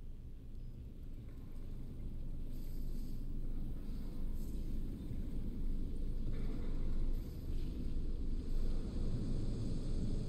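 Steam hisses steadily from pipes.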